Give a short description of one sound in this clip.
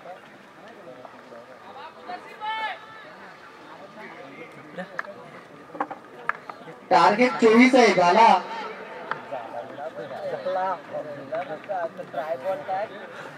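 Men talk and call out at a distance outdoors.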